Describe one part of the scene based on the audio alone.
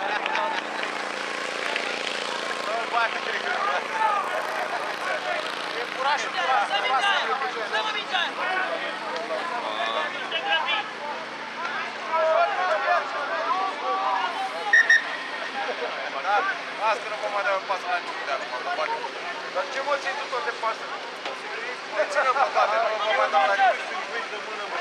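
Young male rugby players shout and call to each other across an open field.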